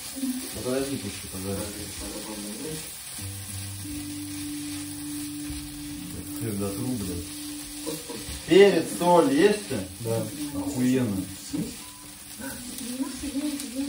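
A young man talks close by in a casual voice.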